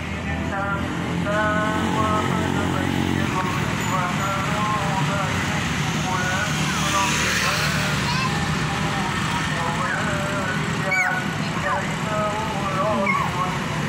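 A heavy truck engine rumbles as it slowly approaches.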